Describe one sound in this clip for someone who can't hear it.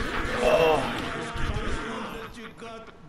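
Video game battle effects clash and whoosh briefly.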